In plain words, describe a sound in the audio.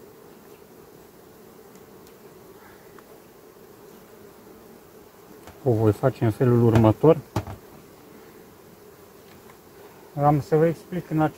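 Bees buzz steadily all around.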